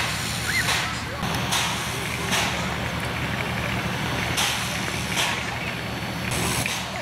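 A steam locomotive puffs in loud, rhythmic bursts of steam.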